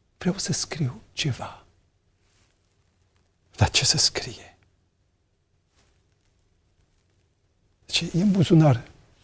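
A man speaks with emphasis and long pauses into a microphone.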